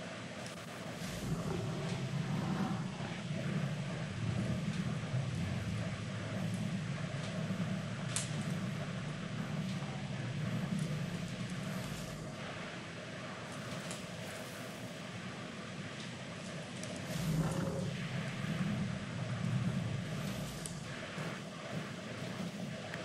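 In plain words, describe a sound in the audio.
A young man talks calmly into a microphone.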